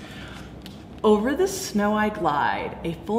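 A woman speaks close by with animation, as if reading a story aloud.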